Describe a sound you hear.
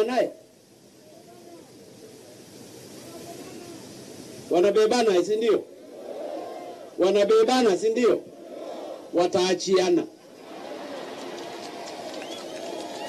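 A crowd murmurs and responds in the pauses.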